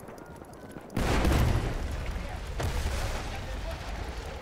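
An explosion booms nearby and rumbles on.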